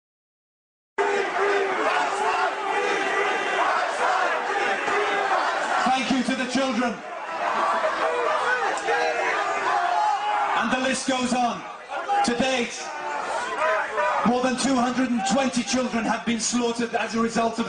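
A man speaks forcefully into a microphone through loudspeakers, outdoors.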